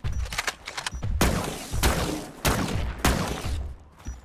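An electric rifle fires sharp crackling bursts.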